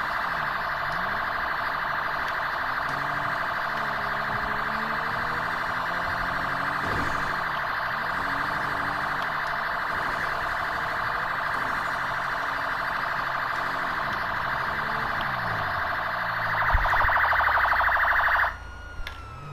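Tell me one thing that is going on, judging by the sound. A police siren blares steadily, then cuts off.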